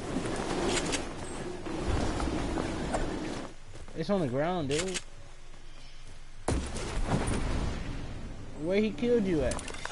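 Wooden panels snap into place with quick clattering knocks.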